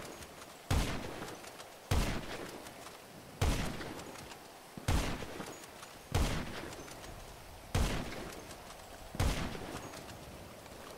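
A rifle fires single shots at a steady pace, each one booming and echoing away.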